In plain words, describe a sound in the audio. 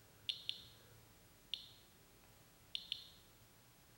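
An electronic meter gives short, sharp clicks now and then.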